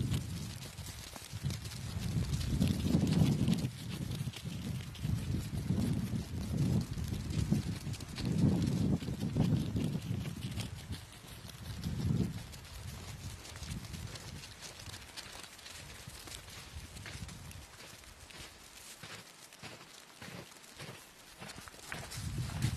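Penguin feet crunch and patter on snow.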